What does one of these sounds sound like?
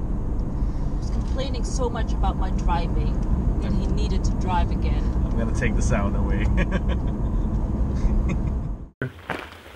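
A young woman talks with animation inside a moving car.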